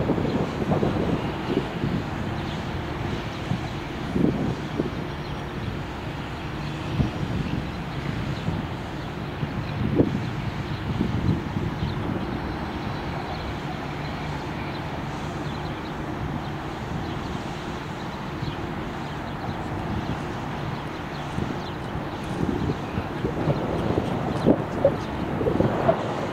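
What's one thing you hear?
A tram rumbles along the rails as it slowly approaches.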